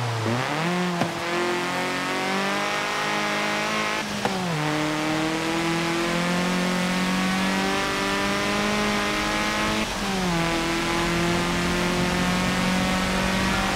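A racing car engine revs hard and shifts up through the gears.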